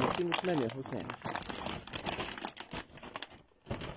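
Cardboard scrapes and thumps as a box is handled.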